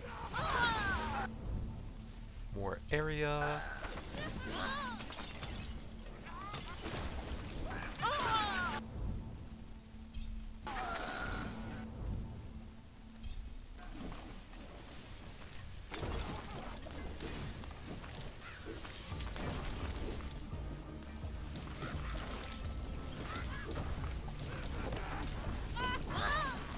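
Magic blasts and hits crash in quick succession.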